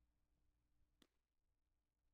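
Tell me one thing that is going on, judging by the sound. A baseball smacks into a catcher's leather mitt.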